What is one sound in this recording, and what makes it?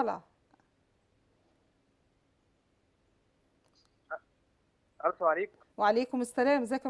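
A woman speaks calmly into a microphone, close by, with short pauses.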